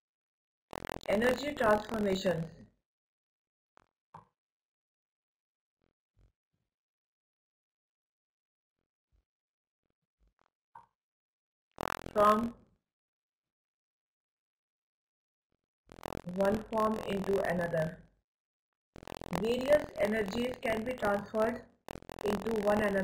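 A woman speaks calmly through a microphone, pausing between phrases.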